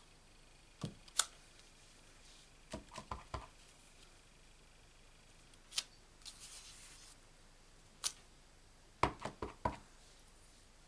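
A small stamp block taps and knocks against a tabletop.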